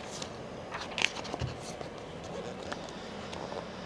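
Paper pages rustle softly as a book is handled.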